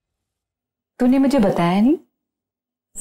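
A woman speaks sharply nearby.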